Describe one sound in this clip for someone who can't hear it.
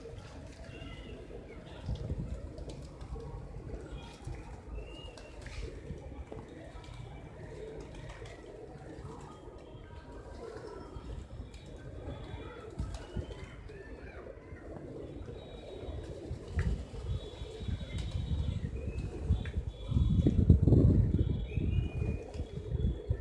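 Many pigeons coo softly nearby.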